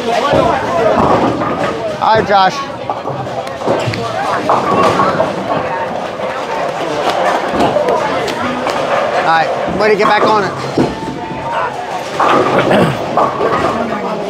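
A bowling ball rolls down a lane and crashes into pins.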